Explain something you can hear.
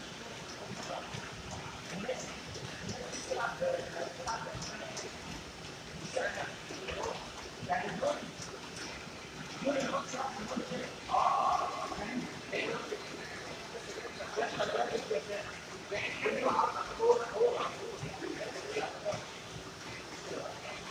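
Footsteps pound steadily on treadmill belts.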